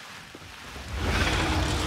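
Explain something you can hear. A fiery blast roars loudly.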